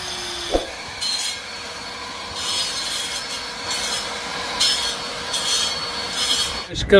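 A man scrapes stone with a hand tool in short strokes.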